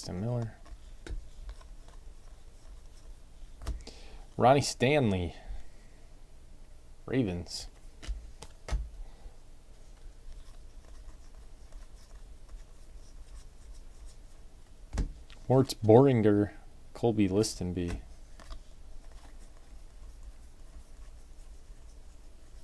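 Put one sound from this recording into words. Trading cards rustle and slide against each other as they are flipped through by hand.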